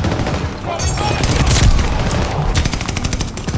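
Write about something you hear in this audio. A fiery explosion booms and roars.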